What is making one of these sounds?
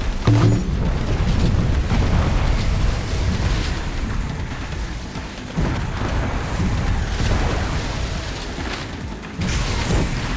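Water splashes and sprays around a racing boat.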